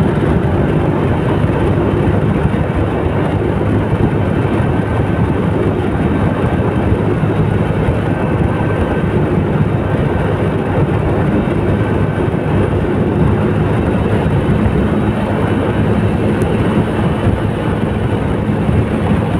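Wind rushes past loudly outdoors.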